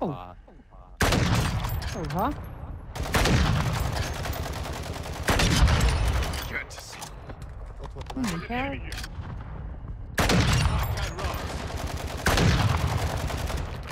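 Sniper rifle shots boom loudly, one after another.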